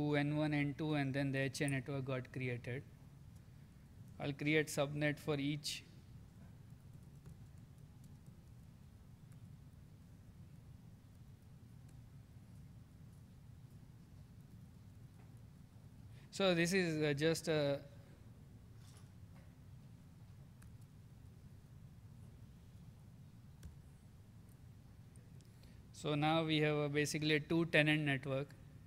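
A man speaks calmly through a microphone, pausing often.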